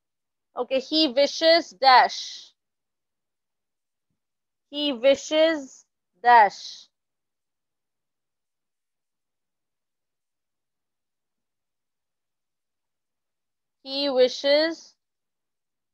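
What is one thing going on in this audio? A young woman speaks calmly into a microphone in short phrases with long pauses.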